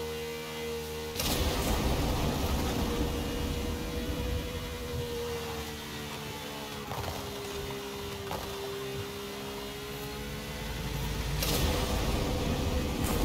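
A racing car engine roars at high speed, shifting pitch as the car climbs and drops.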